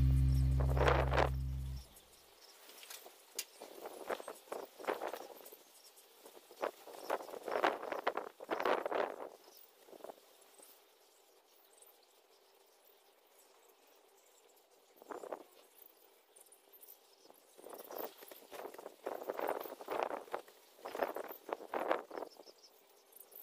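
Small animals in a cage chirp and squeak in short bursts.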